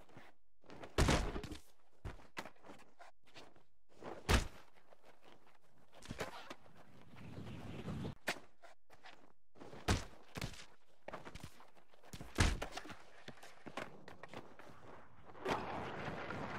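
A skateboard clatters and slaps hard against the ground.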